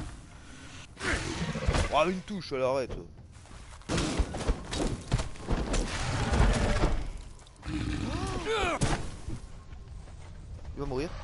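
A large beast roars and growls loudly.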